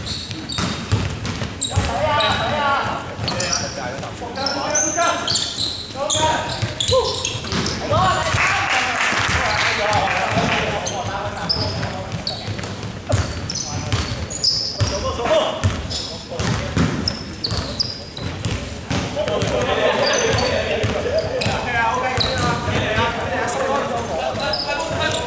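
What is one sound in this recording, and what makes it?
Sneakers squeak sharply on a hard floor in a large echoing hall.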